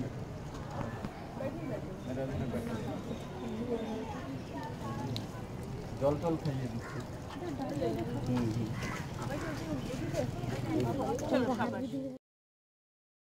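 Several children and a woman chatter nearby outdoors.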